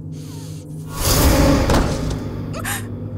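A man crashes heavily onto a hard floor.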